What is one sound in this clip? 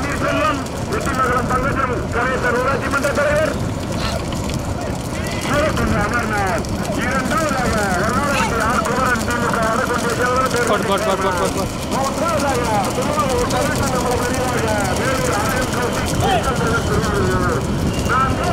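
Hooves clatter on a paved road.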